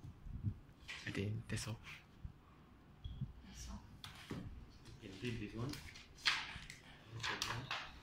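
Paper rustles as pages are turned and shuffled.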